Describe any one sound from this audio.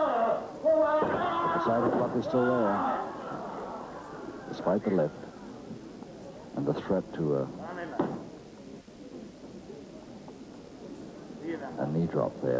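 Bodies thud and scuffle on a wrestling mat.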